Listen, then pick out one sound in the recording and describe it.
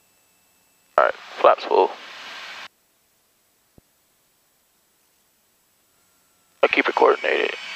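A young man speaks calmly through a headset microphone.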